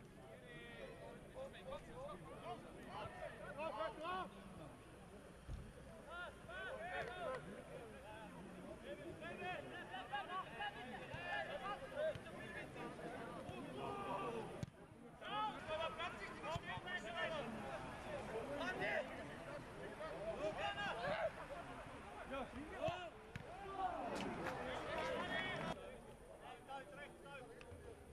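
Men shout and call to each other across an open outdoor field.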